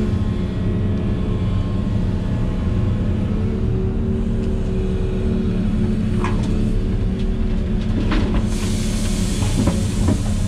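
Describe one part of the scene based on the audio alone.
Hydraulics whine as an excavator arm moves.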